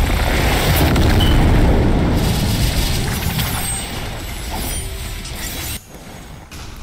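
A powerful energy blast roars and rumbles loudly, then fades.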